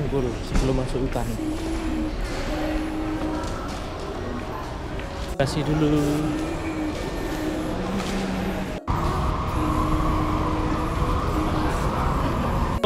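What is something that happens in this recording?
Many people murmur and chatter in a large echoing hall.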